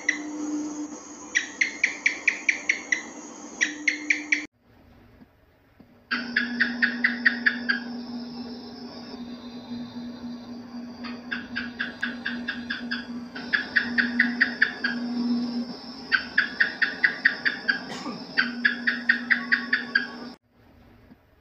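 A gecko calls with quick runs of sharp chirping clicks.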